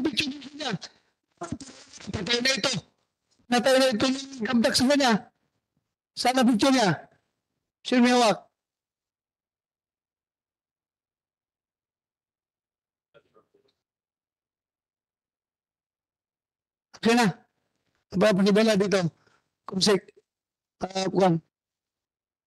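A man speaks firmly into a microphone, in short bursts.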